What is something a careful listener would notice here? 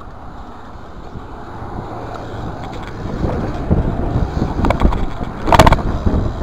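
Knobby BMX bike tyres roll over concrete.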